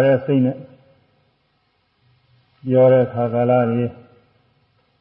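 An elderly man speaks slowly and calmly.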